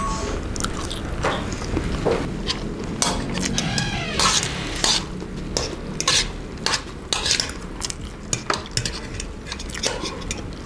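A young woman chews and slurps noodles close to a microphone.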